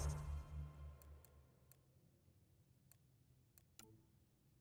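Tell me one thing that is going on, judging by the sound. Menu selections click sharply several times.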